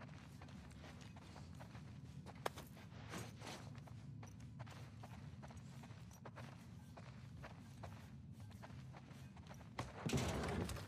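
Footsteps creak and thud on a wooden floor.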